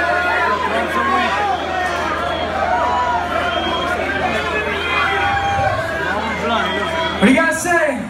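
An electric guitar plays on stage.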